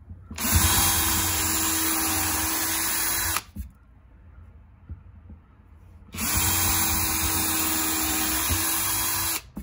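A cordless drill whirs steadily as it drives into wood, in two long bursts.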